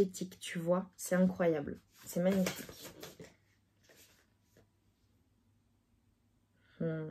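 A young woman speaks softly and calmly close to a microphone.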